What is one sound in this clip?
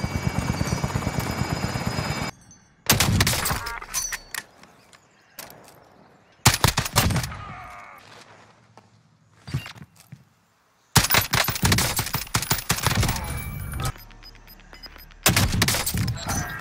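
Gunshots crack loudly, one after another.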